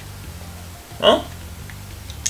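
A young man gives a short rising exclamation close to a microphone.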